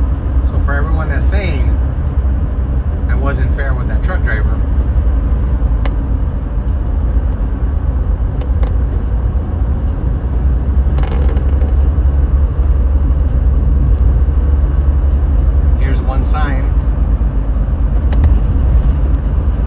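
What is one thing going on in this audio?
Road noise rumbles steadily from inside a moving car on a highway.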